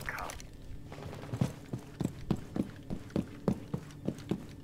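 Footsteps thud on a hard floor at a steady walking pace.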